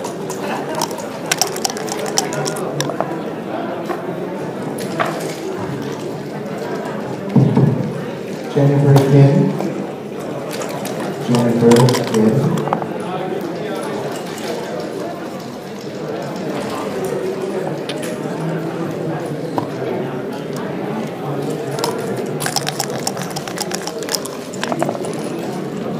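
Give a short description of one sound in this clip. Dice rattle and tumble onto a wooden board.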